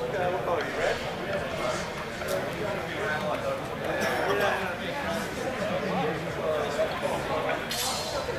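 Men talk in a large echoing hall.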